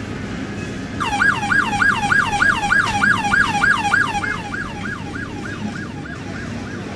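A police siren yelps rapidly up and down, then fades.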